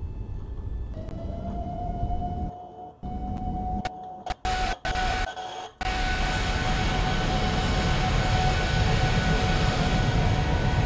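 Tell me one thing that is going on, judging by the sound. A jet engine whine rises and grows to a loud roar.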